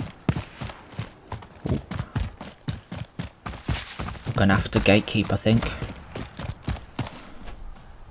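Quick footsteps crunch over dirt and gravel.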